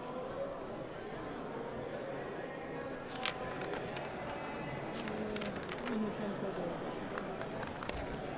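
Many men and women murmur and chatter in a large echoing hall.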